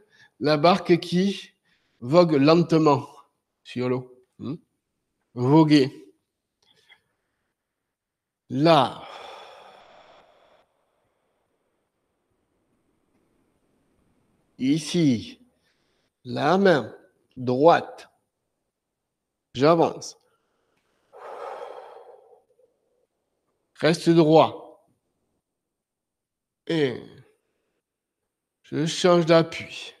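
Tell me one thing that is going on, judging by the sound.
A man calls out short, loud words with long pauses between them.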